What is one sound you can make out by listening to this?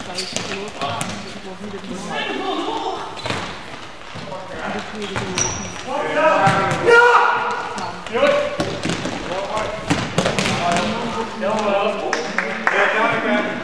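A ball thumps as it is kicked.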